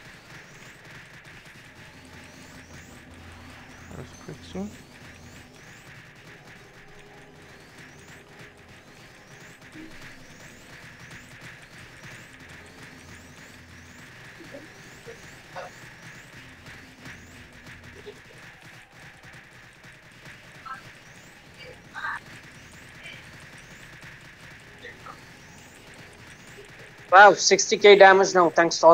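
Magic spell effects crackle and chime in a game.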